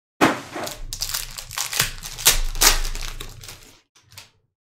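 A foil wrapper crinkles and tears open close by.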